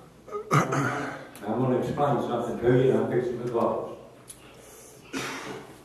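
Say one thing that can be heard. An elderly man speaks through a microphone and loudspeakers in a room that echoes slightly.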